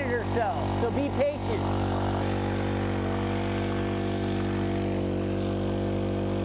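A pump engine hums steadily.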